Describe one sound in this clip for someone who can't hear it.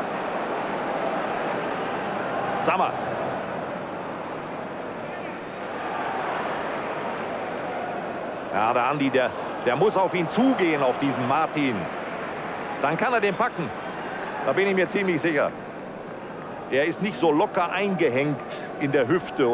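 A large stadium crowd murmurs and roars steadily.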